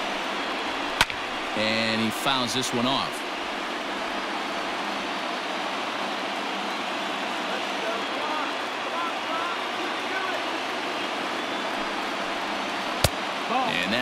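A baseball smacks sharply into a catcher's mitt.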